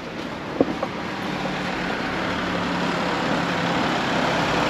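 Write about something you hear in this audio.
A car approaches along the road, its engine and tyres growing louder.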